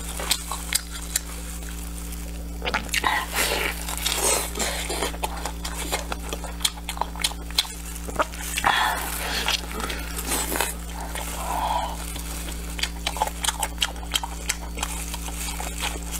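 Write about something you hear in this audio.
A young man chews and slurps food loudly, close to a microphone.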